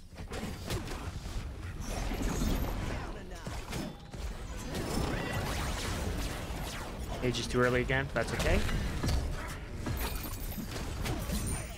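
Magic blasts whoosh and crackle in a fight.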